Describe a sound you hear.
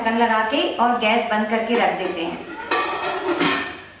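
A metal lid clanks down onto a pot.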